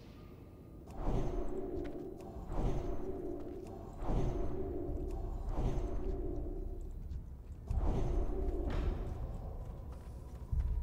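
Magic spells burst with ringing, whooshing tones, again and again.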